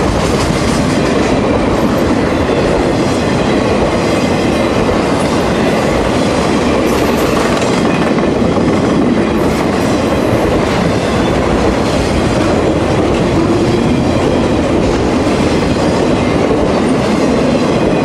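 Steel wheels clatter and squeal over rail joints.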